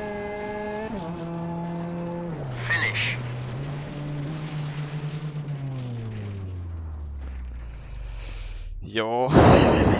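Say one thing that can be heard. A rally car engine hums and drops in pitch as the car slows and shifts gears.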